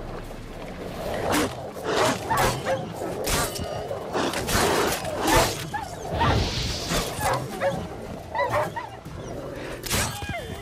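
A sword swishes and strikes in combat.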